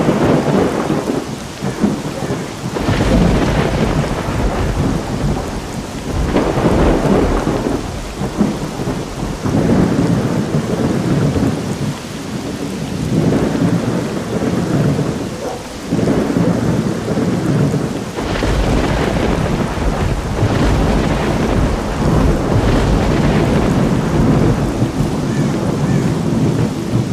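Wind gusts through trees in rising and falling surges.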